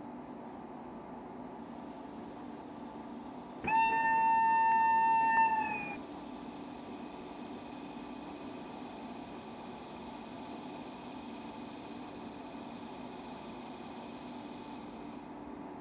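A locomotive engine hums steadily at idle.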